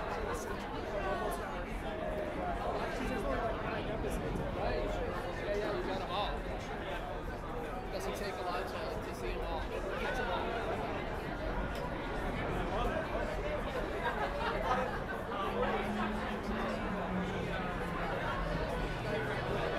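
Men and women in a small crowd chatter nearby.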